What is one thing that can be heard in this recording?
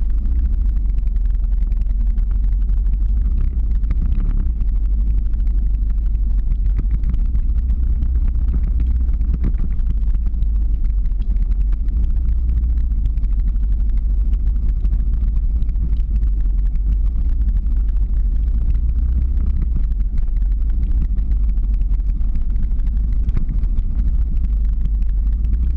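Wind roars loudly over a moving microphone outdoors.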